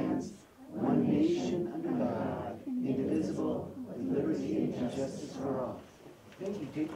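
A group of adults recites together in unison in a room.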